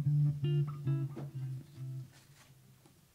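A saxophone plays a melody.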